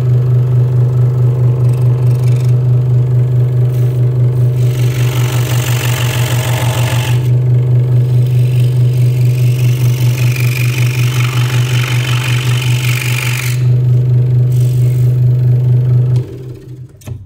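A scroll saw hums and buzzes steadily as its blade cuts through wood, then stops.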